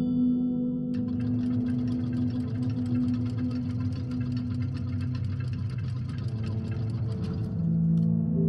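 Clockwork gears tick rapidly as they turn.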